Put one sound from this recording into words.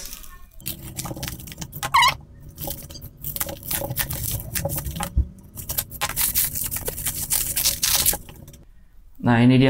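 Plastic wrapping crinkles and rustles as hands tear it open.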